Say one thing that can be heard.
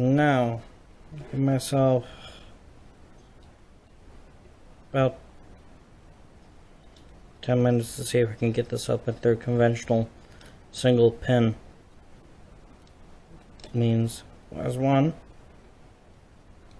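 A metal pick clicks and scrapes faintly inside a small lock.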